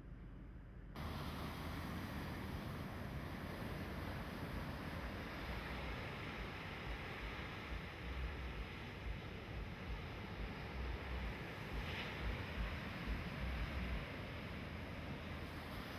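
Waves crash and roar onto a rocky shore.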